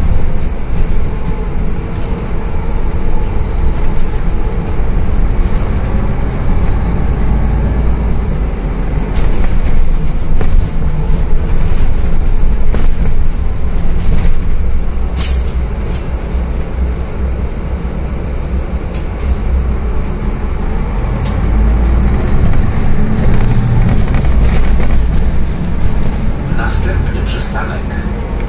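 Loose parts of a bus rattle and click while it moves.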